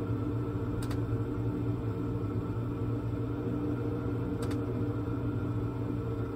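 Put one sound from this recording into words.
A simulated aircraft engine drones steadily through loudspeakers.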